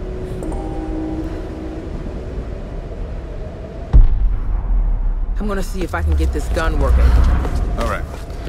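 Footsteps thud on a wooden deck.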